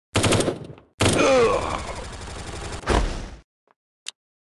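An explosion booms and hisses.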